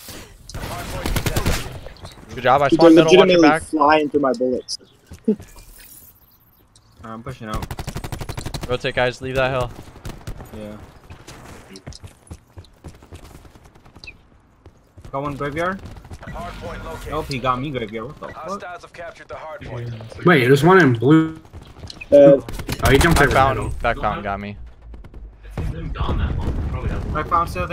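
Gunfire rattles.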